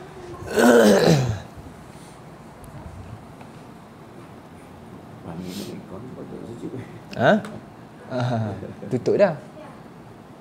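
A man speaks in short bursts close by.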